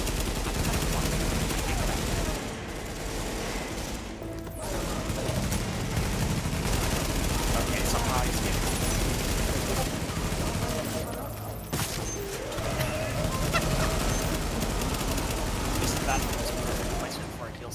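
Rapid gunfire rattles from rifles.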